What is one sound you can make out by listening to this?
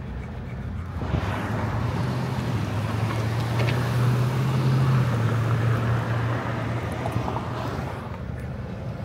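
A pickup truck drives past at low speed.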